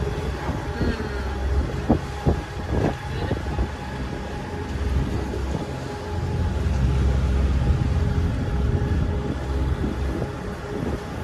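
Water splashes and rushes along a boat's hull.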